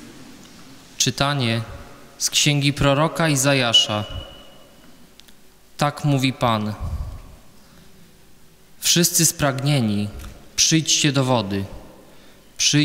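A young man reads aloud slowly through a microphone in a large echoing hall.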